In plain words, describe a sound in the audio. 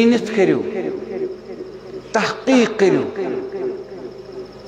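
A man speaks passionately into a microphone over a loudspeaker.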